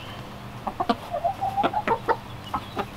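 Chickens cluck softly close by.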